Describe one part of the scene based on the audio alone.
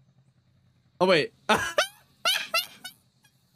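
A young man laughs loudly into a close microphone.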